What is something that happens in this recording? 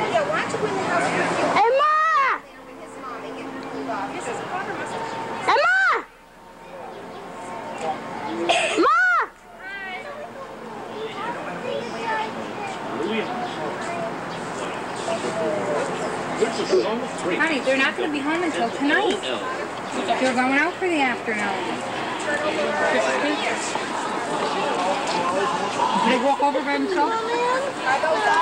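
Several men and women chat and talk over one another nearby.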